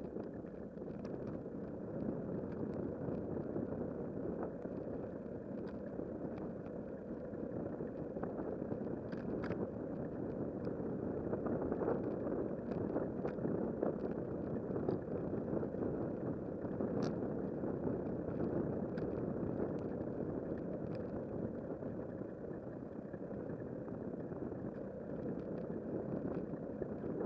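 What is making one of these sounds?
Bicycle tyres roll steadily on a paved path.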